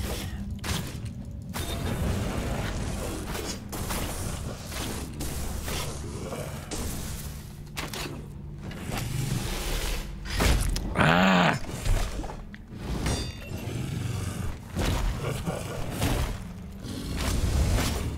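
Metal blades clash and slash in a fight.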